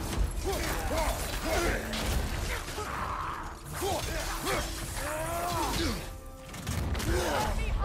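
Weapons clash and thud in a fierce fight.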